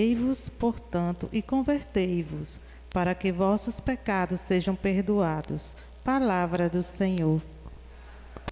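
A woman speaks into a microphone in a calm, steady voice.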